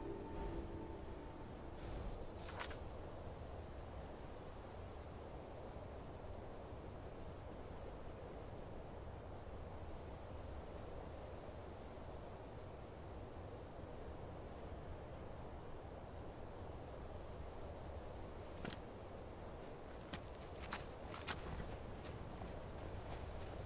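Wind blows steadily with a low rumble.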